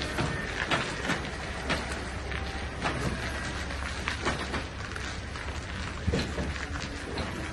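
Tyres crunch slowly over gravel.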